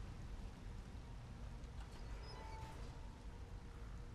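A heavy metal gate rattles and creaks open.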